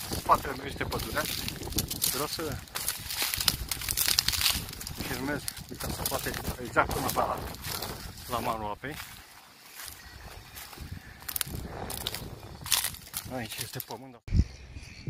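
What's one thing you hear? Dry reeds rustle and crackle close by.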